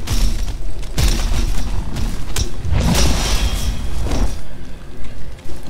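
Heavy blows thud and crash against a creature.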